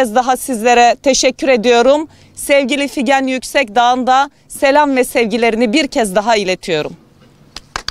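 A woman speaks firmly into microphones close by.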